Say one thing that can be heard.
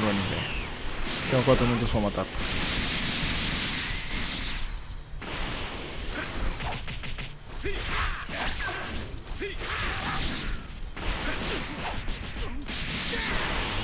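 Punches and blows land with heavy thuds.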